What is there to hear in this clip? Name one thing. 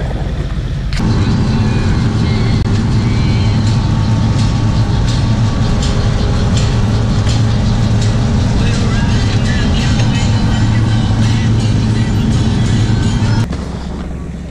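A snow vehicle's engine rumbles loudly from inside the cabin as it drives.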